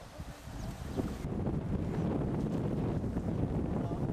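A group of people talk outdoors.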